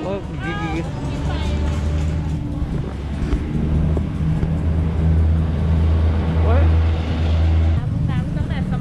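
A vehicle engine hums steadily nearby.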